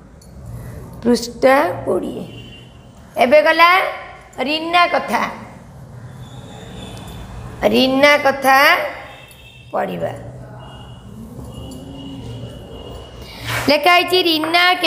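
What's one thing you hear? A woman speaks clearly and slowly nearby, in short phrases, as if teaching.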